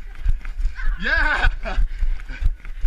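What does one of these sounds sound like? A young girl squeals while running.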